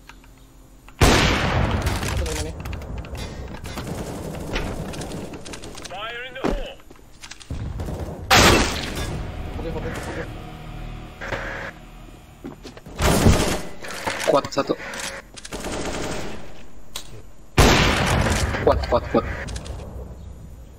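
Loud sniper rifle shots crack and echo.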